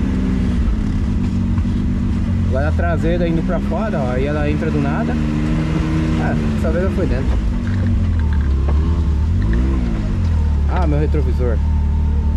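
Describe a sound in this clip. An off-road vehicle's engine rumbles steadily and revs up and down.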